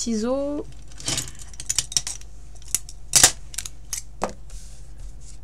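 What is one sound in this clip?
Small objects tap and clack on a table as they are handled.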